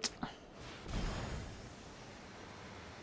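A magical whoosh sweeps across as a spell is cast.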